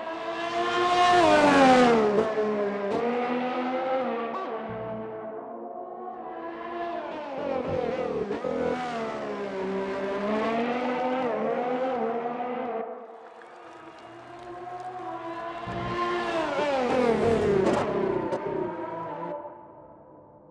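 A racing car engine screams at high revs, rising and falling as it shifts gears and brakes.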